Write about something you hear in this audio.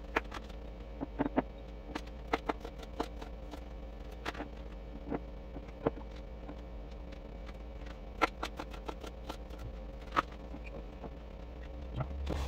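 Fruit slices drop into a glass jar.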